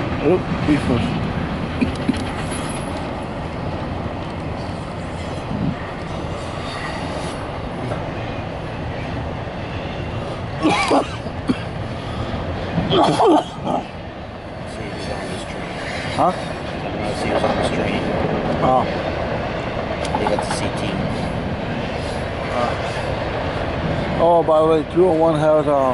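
A freight train rumbles and clatters steadily across a bridge nearby, outdoors.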